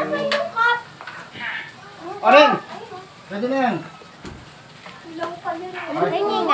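Women and children talk and exclaim excitedly close by.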